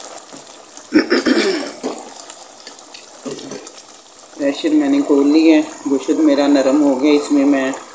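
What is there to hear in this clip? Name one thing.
A wooden spoon stirs and scrapes inside a metal pot.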